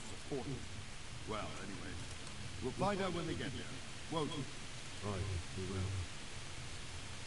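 An older man speaks calmly up close.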